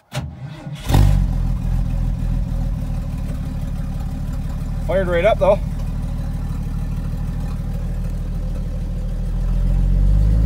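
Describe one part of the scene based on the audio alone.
An engine idles with a low steady rumble.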